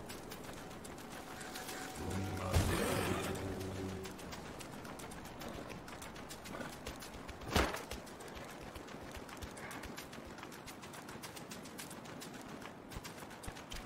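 Footsteps patter quickly on dry dirt.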